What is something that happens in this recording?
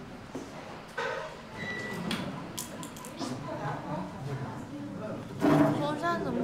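Several students murmur quietly in a room.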